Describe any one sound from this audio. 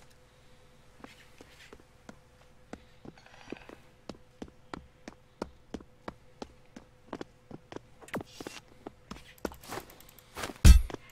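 Footsteps tap steadily on a hard surface.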